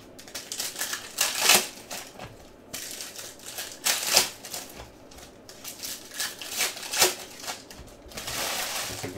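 Plastic card wrappers crinkle and tear close up.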